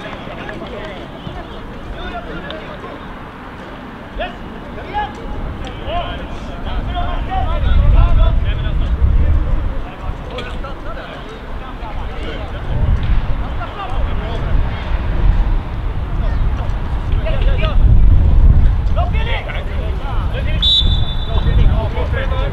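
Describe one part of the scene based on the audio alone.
Players shout to each other across an outdoor field, some distance away.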